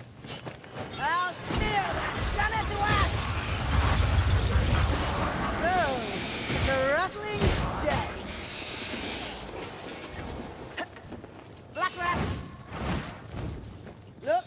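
A heavy weapon swings and strikes with loud thuds.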